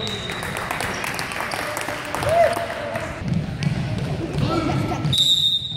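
Sneakers squeak on a wooden court in an echoing gym.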